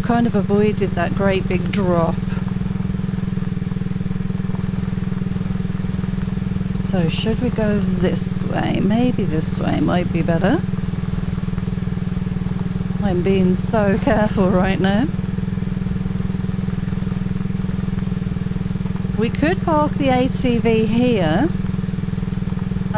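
A quad bike engine drones steadily as it drives over rough ground.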